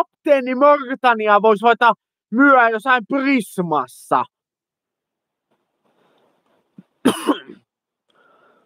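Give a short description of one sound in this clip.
A young man speaks close to the microphone with animation.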